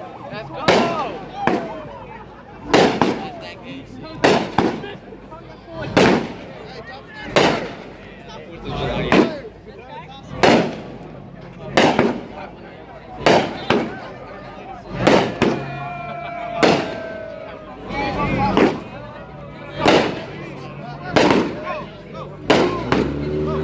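Fireworks bang sharply again and again.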